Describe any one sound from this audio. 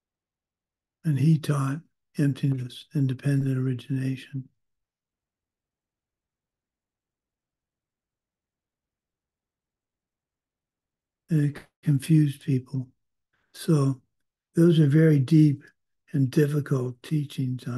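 An older man speaks calmly into a microphone, heard over an online call, pausing at length between phrases.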